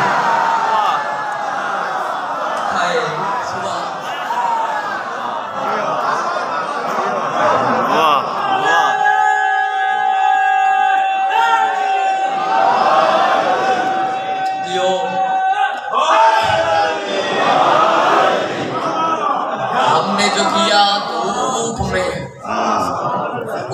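A crowd of men chants along loudly.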